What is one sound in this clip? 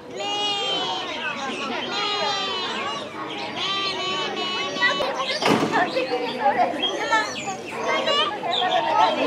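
A lamb bleats nearby.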